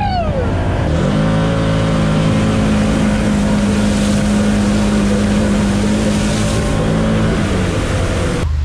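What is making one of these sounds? A vehicle engine roars up close.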